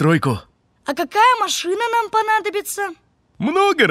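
A young boy speaks brightly.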